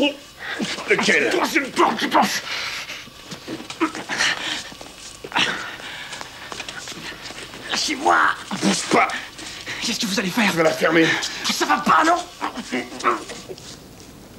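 A man speaks harshly up close.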